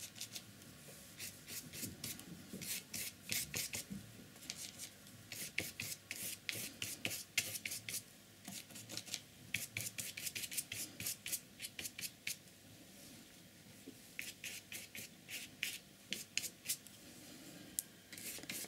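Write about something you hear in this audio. A paintbrush scratches and taps across paper in quick strokes.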